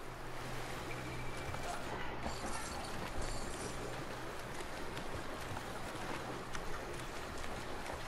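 Water splashes as a swimmer paddles along.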